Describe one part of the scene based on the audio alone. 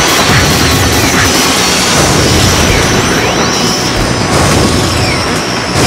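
A racing craft roars along at high speed with a loud, steady engine whine.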